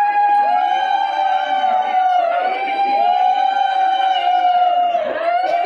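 Several women ululate together in long, high, sustained calls.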